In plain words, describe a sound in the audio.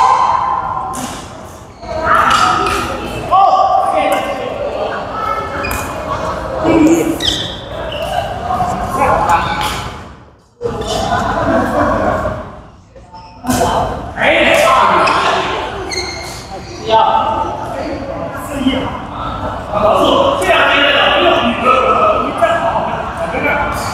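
Rackets strike a shuttlecock with sharp pops in an echoing hall.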